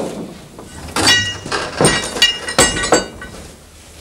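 A metal pole clanks against a metal vat.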